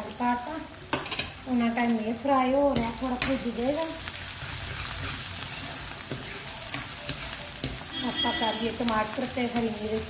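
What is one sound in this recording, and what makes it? A spatula scrapes and stirs food in a metal pan.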